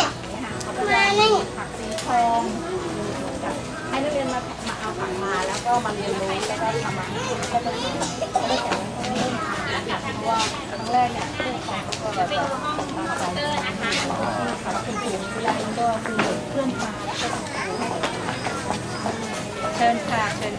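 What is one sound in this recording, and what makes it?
A middle-aged woman speaks calmly close by.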